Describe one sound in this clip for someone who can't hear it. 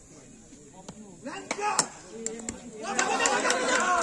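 A wooden cricket bat strikes a ball with a sharp crack.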